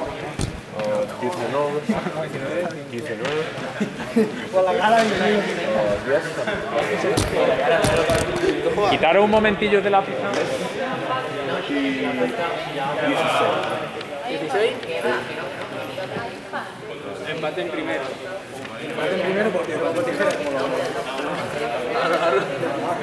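A young man talks calmly close by, with a slight echo in a large hall.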